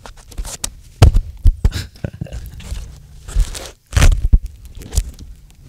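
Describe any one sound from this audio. A microphone rustles and thumps as it is handled.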